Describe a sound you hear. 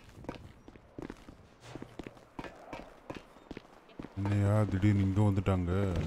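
Footsteps clatter quickly on metal stairs.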